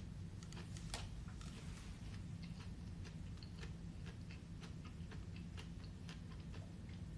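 A young man chews and crunches food.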